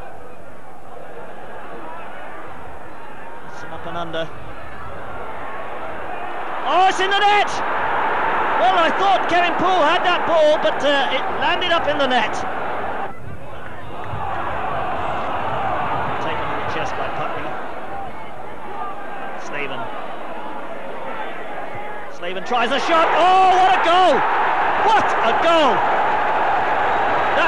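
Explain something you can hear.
A large stadium crowd roars steadily outdoors.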